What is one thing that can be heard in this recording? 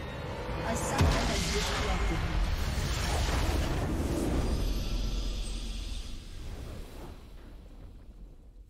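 A deep explosion booms and rumbles, then fades.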